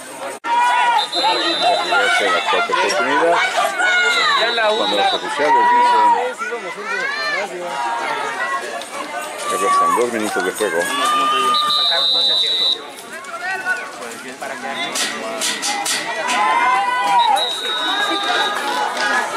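A referee blows short whistle blasts.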